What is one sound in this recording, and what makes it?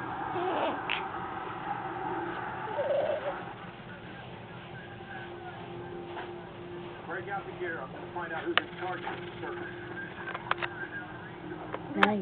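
A newborn baby coos and grunts softly close by.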